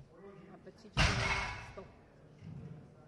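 A loaded barbell drops onto the floor with a loud thud.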